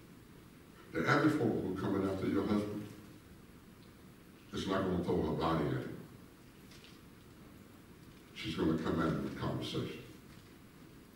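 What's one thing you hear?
A man speaks in bursts through a microphone, echoing in a large hall.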